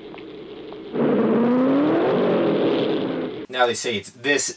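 A car engine revs up loudly.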